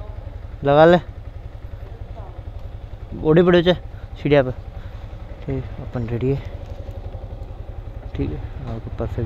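A motorcycle engine idles with a low, steady rumble.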